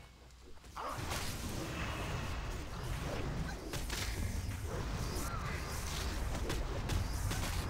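Fire spells roar and crackle in a game battle.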